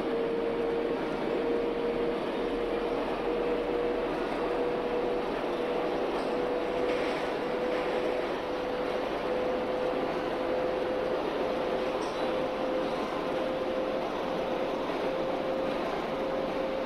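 An electric train motor whines steadily, slowly rising in pitch as the train speeds up.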